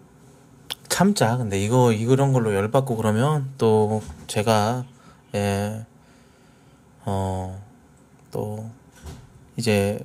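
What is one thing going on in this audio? A man speaks close to a microphone in a lively, expressive voice.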